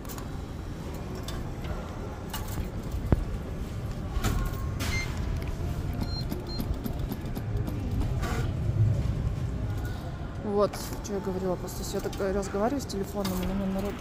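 A claw machine whirs as its claw moves.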